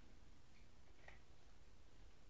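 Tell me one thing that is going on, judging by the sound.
A small plastic plug clicks into a socket.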